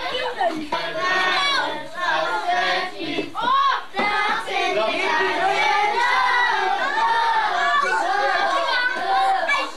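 Children chatter and shout in an echoing room.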